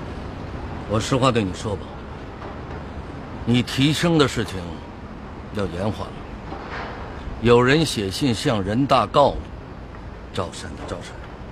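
A middle-aged man speaks calmly up close.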